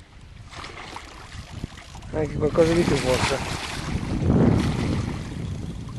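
A large fish splashes and thrashes at the water's surface close by.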